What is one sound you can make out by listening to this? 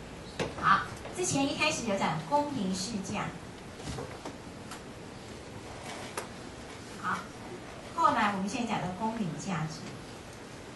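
A woman speaks calmly, as if lecturing.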